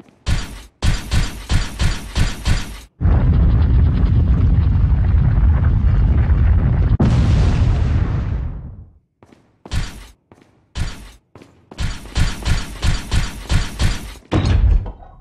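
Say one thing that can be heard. Footsteps tap steadily on a hard floor in a large echoing hall.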